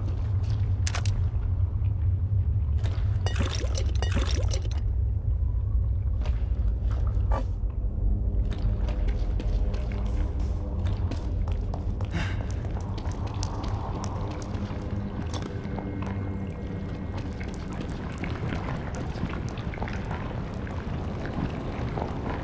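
A low droning hum fills an echoing underground space.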